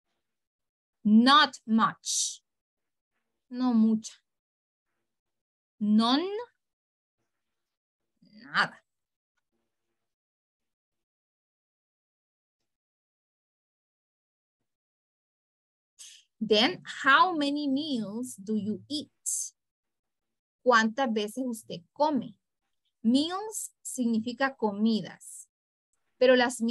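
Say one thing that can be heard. A young woman speaks clearly over an online call, in short phrases with pauses.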